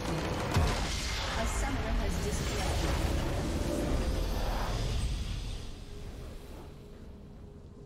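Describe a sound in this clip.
A huge magical explosion booms and crackles, then fades away.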